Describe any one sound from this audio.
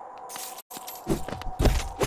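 A blade slashes with a quick whoosh.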